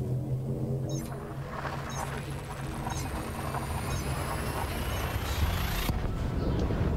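A spaceship's jump drive charges with a rising whoosh and then roars.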